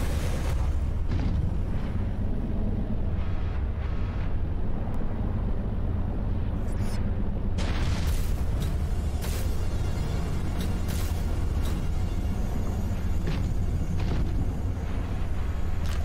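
A small submarine's engine hums low and steady underwater.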